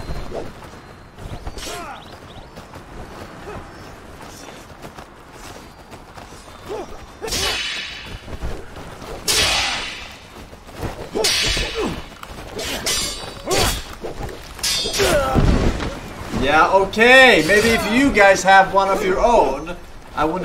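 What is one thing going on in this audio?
A man talks with animation close to a microphone.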